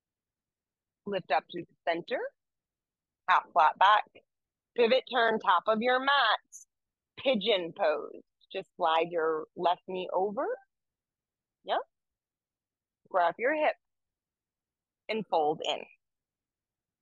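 A woman speaks calmly and clearly through a microphone.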